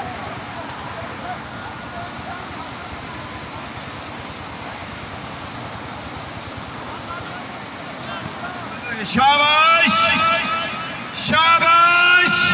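A large crowd murmurs and chatters in the distance outdoors.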